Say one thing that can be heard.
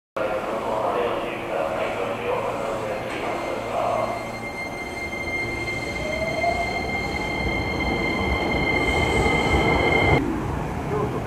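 A train rumbles past close by on the tracks.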